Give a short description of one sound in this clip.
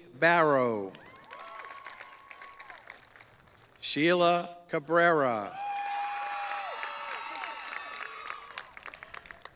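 A crowd claps its hands.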